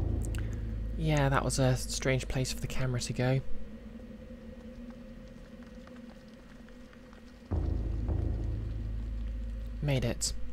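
A young woman talks into a close microphone.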